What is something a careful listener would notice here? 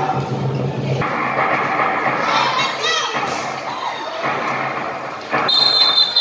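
A crowd of spectators cheers and chatters in a large echoing hall.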